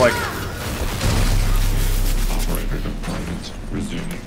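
An explosion bursts with a roar.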